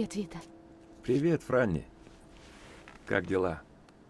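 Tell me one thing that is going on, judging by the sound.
A young woman answers calmly.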